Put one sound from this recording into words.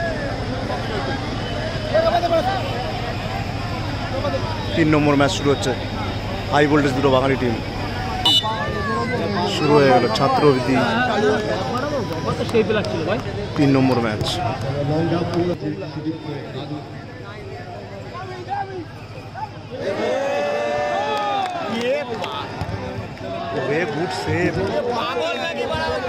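A large outdoor crowd murmurs and cheers.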